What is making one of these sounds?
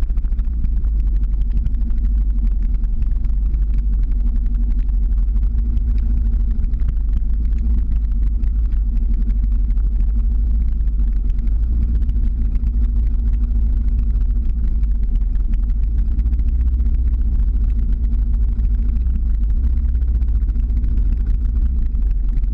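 Wind roars loudly across the microphone.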